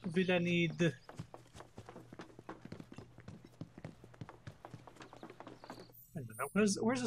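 Footsteps walk steadily over wooden planks.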